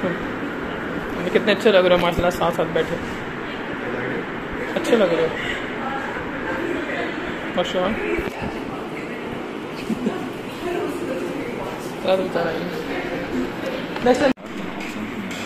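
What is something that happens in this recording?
Young men talk with each other nearby.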